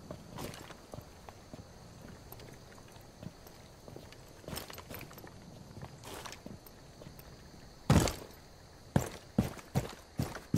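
Footsteps tread on a hard surface.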